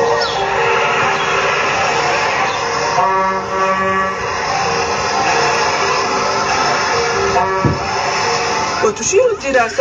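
A cheerful children's song plays through a small loudspeaker.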